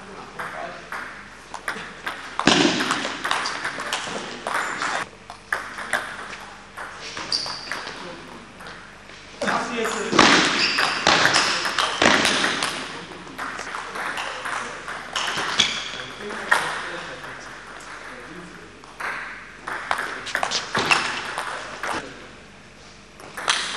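A table tennis ball clicks back and forth between paddles and the table in an echoing hall.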